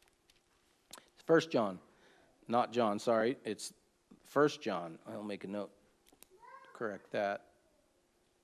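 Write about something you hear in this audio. An older man speaks calmly and slowly, close to a microphone.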